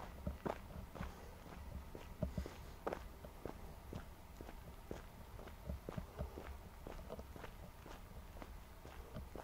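Footsteps fall on an asphalt path at a walking pace.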